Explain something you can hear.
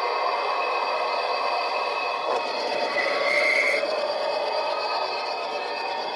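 A model train rolls past on its track.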